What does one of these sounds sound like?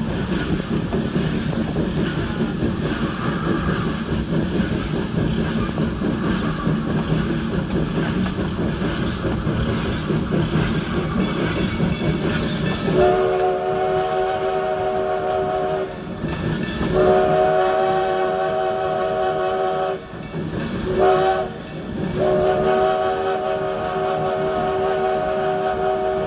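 A steam locomotive chugs and rumbles along the rails.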